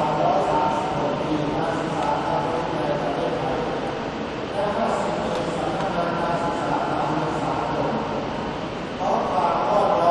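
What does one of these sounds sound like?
A large crowd sings together in a big, echoing space.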